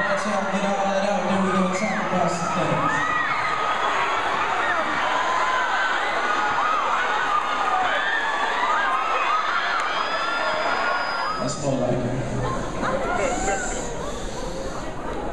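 A young man speaks into a microphone over loudspeakers in a large echoing hall.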